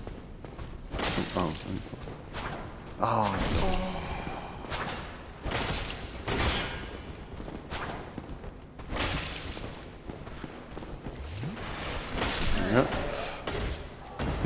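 Swords clash and clang against metal shields.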